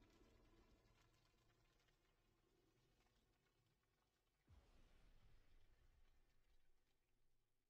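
Water splashes and rushes along the hull of a small sailing boat.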